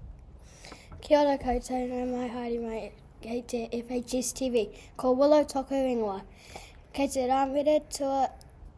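A young girl speaks clearly and steadily into a microphone, as if reading out.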